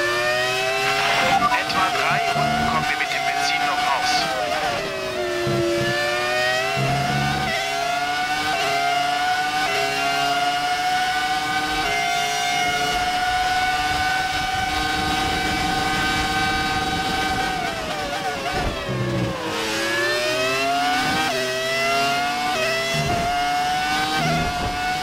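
Gears shift with sharp cracks as a racing car engine changes pitch.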